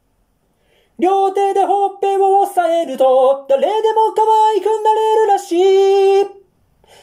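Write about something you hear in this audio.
A young man sings a steady, high melody into a microphone.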